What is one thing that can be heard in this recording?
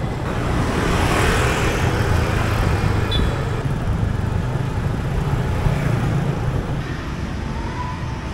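Motorbike engines hum along a busy street.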